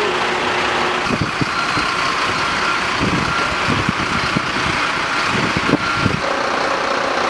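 A fire engine's motor idles nearby.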